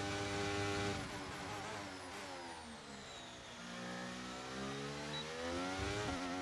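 A racing car engine winds down as the car brakes, then revs back up.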